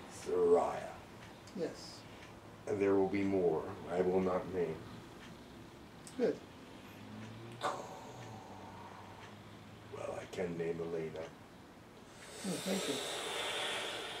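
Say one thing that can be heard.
A middle-aged man speaks calmly and explains nearby.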